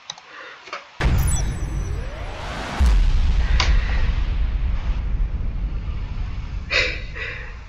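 A deep booming burst with a bright chime sounds and slowly fades.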